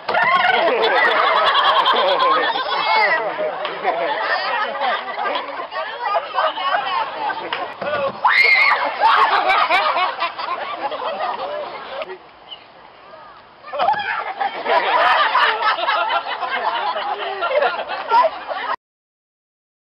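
A crowd of men, women and children chatter nearby outdoors.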